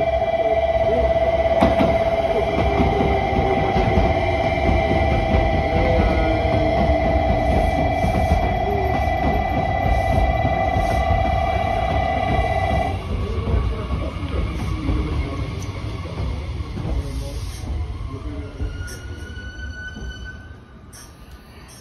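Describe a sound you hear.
A train rolls in with a low rumble and gradually slows down.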